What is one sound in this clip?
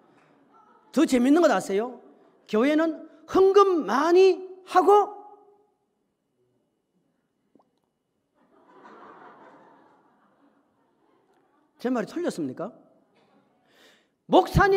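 A middle-aged man preaches forcefully into a microphone, in bursts with pauses.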